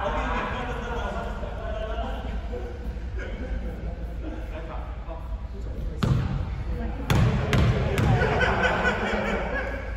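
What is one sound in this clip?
Young men talk casually nearby in an echoing hall.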